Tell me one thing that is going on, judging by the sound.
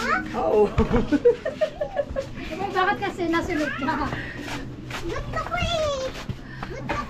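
A boy talks close by with animation.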